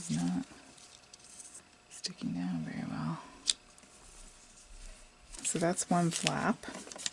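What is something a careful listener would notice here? Paper rustles and slides as it is handled.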